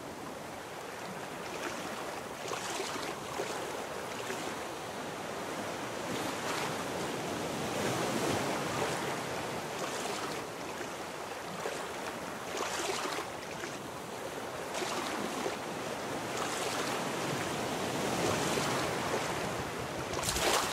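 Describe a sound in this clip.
Water splashes with repeated swimming strokes.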